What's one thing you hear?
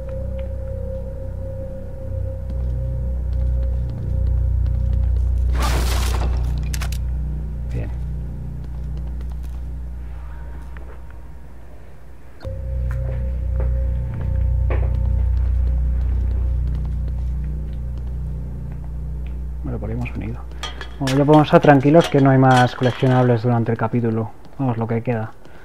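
Footsteps tap slowly on a hard floor in an echoing corridor.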